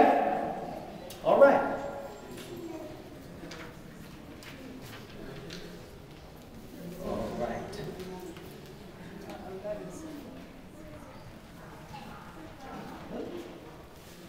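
A young man speaks into a microphone over a loudspeaker in an echoing room.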